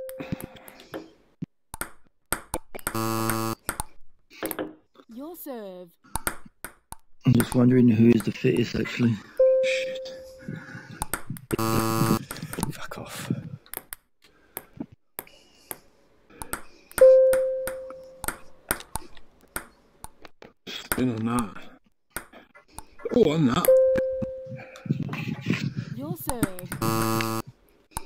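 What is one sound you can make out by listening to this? A ping-pong ball clicks sharply back and forth on paddles and a table.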